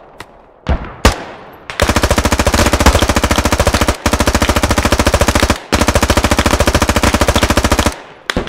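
A rifle fires rapid automatic bursts, with a few single shots first.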